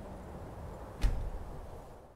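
A single sharp menu click sounds.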